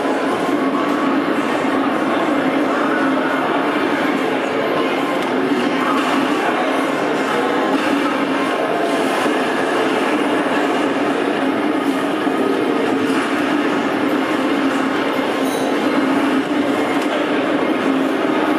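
Flames roar and crackle from a video game over loudspeakers.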